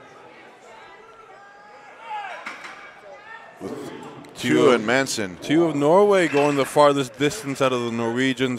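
Heavy metal weights clank on a hard floor.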